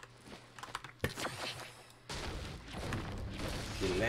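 A pickaxe strikes a tree with a sharp thud.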